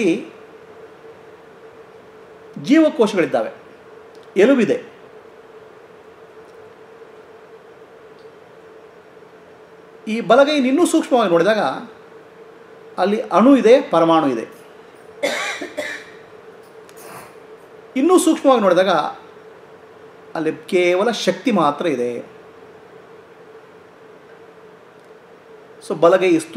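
A middle-aged man chants in short, drawn-out phrases close to a microphone, with pauses between them.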